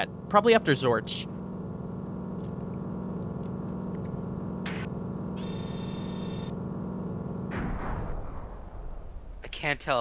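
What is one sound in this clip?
A spaceship engine hums steadily, then winds down.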